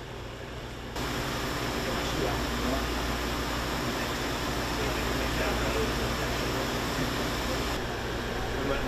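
Sap bubbles and hisses as it boils in a pan.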